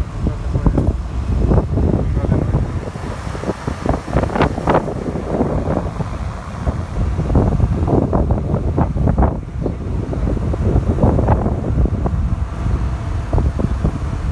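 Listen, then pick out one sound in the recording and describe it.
Strong wind gusts and rumbles outdoors.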